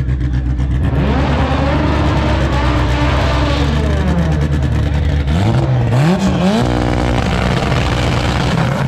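A car engine revs up and down nearby.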